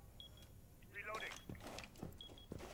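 A gun is reloaded with quick metallic clicks.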